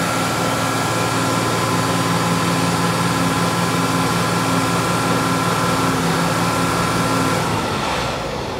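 A fire truck's diesel engine idles loudly nearby.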